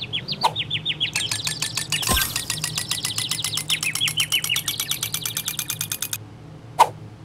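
Rapid electronic chimes tick as a game score counts up.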